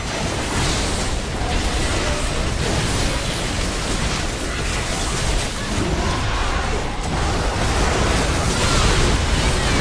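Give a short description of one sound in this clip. Game sound effects of spells and blows crackle and clash.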